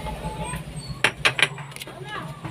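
A spatula knocks against the side of a metal pan.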